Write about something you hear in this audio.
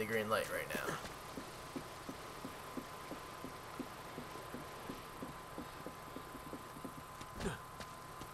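Footsteps thud quickly across wooden boards.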